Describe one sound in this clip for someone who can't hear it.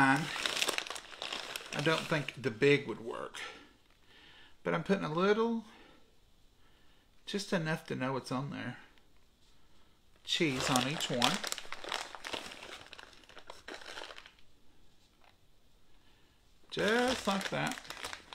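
A paper packet rustles in a man's hands.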